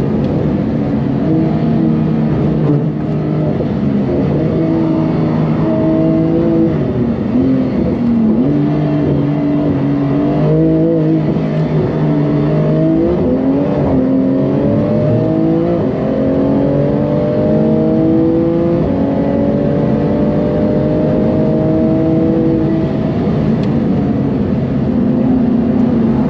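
Tyres hum on the track surface.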